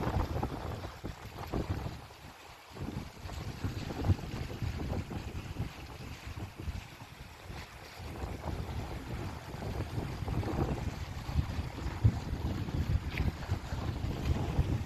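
Small waves splash against rocks.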